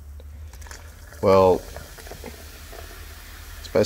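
Soda foam fizzes and crackles softly.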